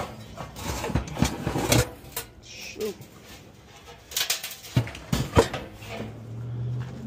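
A metal fan housing clatters and scrapes as it is handled.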